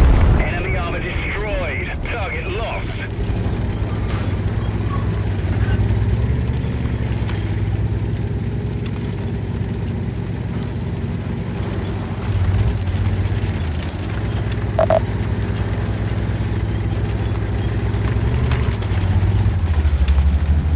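A heavy tank engine rumbles and clanks steadily.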